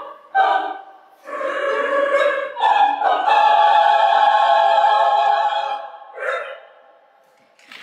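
A large choir of women sings the final chord of a song in an echoing hall.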